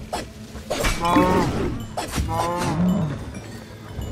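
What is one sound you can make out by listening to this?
Quick game sound effects of blows and strikes ring out during a fight.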